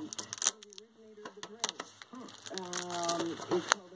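Plastic wrap crinkles as it is peeled off a tin.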